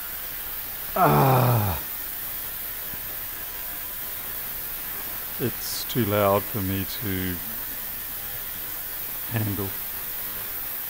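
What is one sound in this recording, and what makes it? A man speaks casually, close to a microphone.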